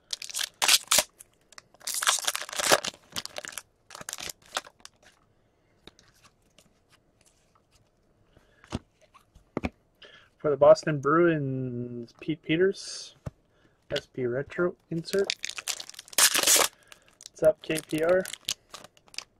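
A plastic wrapper crinkles as hands tear it open.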